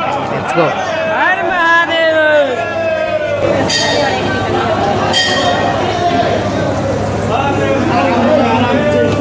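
A woman sings a slow, melodic chant close by.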